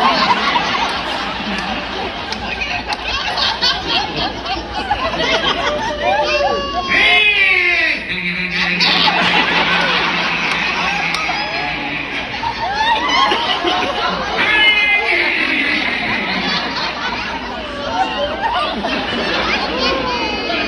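An audience laughs and murmurs nearby.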